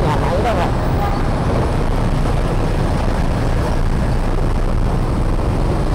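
A bus engine rumbles close alongside.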